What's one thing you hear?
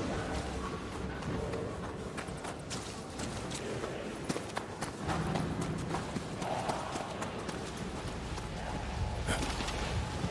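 Quick footsteps run across the ground.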